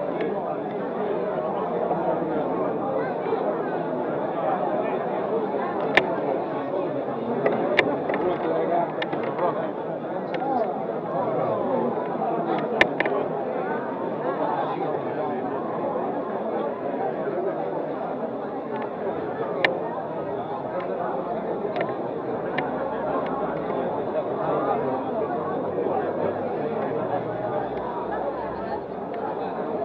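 A crowd of men and women chatters all around, close by.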